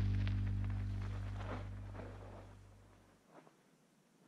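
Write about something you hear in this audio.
A bicycle rolls past on gravel and fades away.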